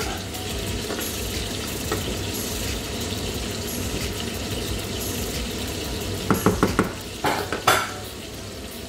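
A wooden spatula scrapes and stirs food in a metal pan.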